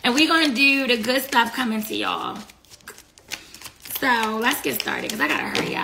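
Plastic packets crinkle in a woman's hands.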